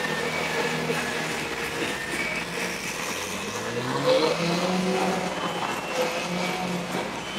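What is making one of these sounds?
A crowd chatters outdoors in the background.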